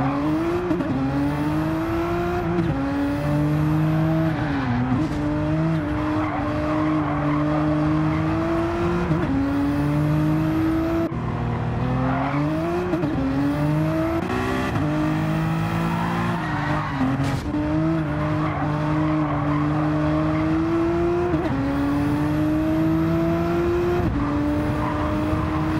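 A racing car engine roars loudly, rising in pitch and dropping sharply with each gear change.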